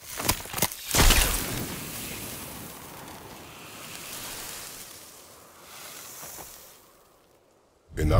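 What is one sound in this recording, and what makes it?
A magical chime shimmers and hums, then fades.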